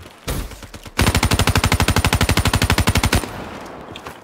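An automatic rifle fires a rapid, steady burst.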